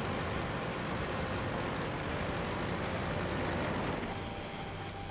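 A tank engine rumbles as a tank drives.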